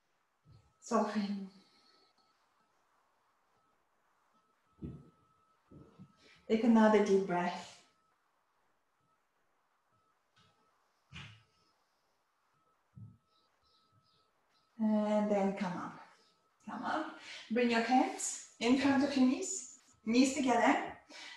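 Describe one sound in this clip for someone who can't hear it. A woman speaks calmly and slowly, close by, with long pauses.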